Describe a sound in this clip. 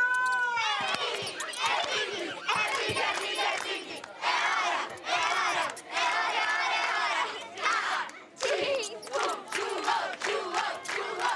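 A group of children claps hands.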